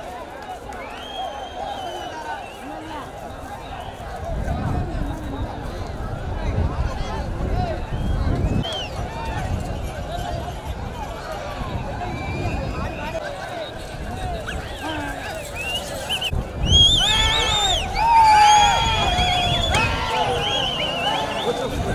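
A large outdoor crowd shouts and cheers.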